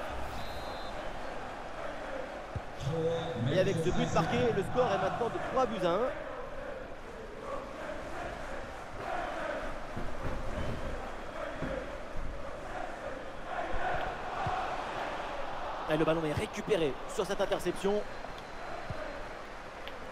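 A large stadium crowd murmurs and cheers steadily in the background.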